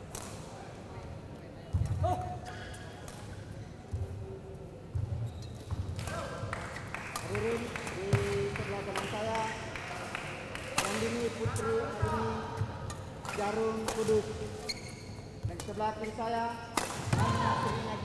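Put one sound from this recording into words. Shuttlecocks are struck sharply back and forth with rackets.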